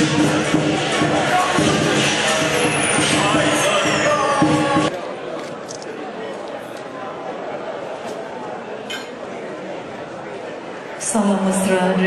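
A crowd of people chatter and murmur in a large hall.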